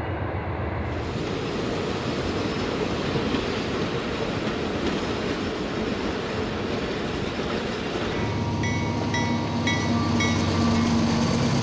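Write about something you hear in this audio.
Train wheels clatter on the rails.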